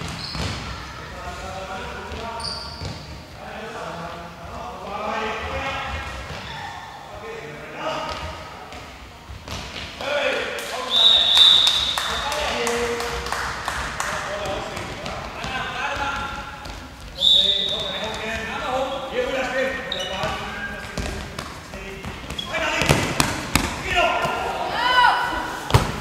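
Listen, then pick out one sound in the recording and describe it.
A handball bounces on a hard floor.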